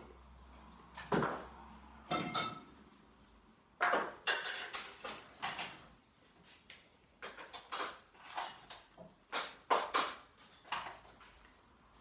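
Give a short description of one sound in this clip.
Dishes and pans clatter and knock on a counter.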